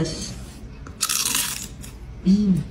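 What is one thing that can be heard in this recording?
A young woman slurps noodles loudly.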